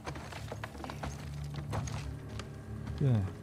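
Footsteps crunch on loose debris.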